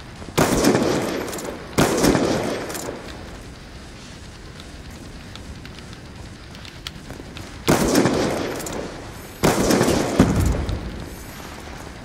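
Sniper rifle shots boom loudly and echo away.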